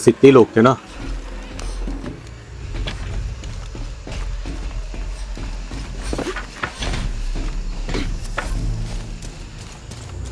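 Footsteps crunch through leaves and undergrowth.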